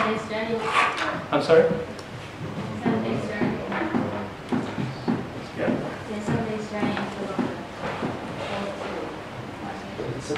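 A man speaks calmly and steadily, as if explaining a lesson, close by.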